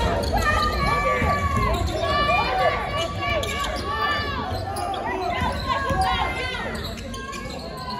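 Basketball sneakers squeak sharply on a hardwood floor in a large echoing gym.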